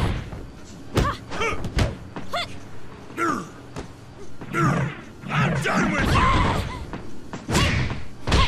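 Heavy bodies thud and slam onto a wrestling mat.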